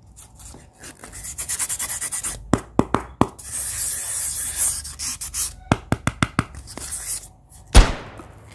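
Foam blocks squeak and rub against hands.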